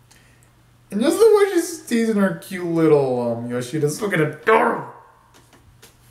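A young man vocalizes loudly close by, his voice sliding up and down.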